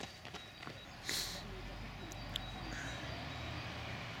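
A car engine hums as it drives slowly past.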